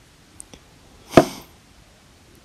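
A game piece clicks as it is moved.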